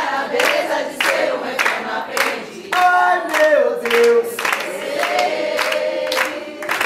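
A group of people clap along in a steady rhythm.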